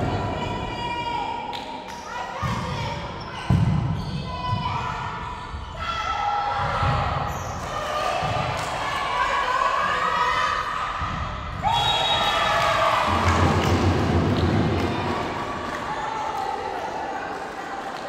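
Girls on a team shout and call out to each other in a large echoing hall.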